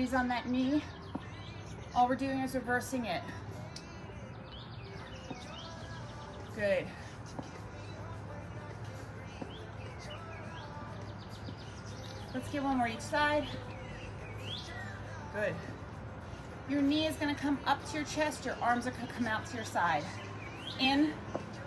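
A woman speaks calmly nearby, giving instructions.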